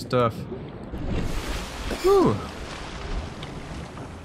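Water splashes and rushes as a swimmer breaks the surface.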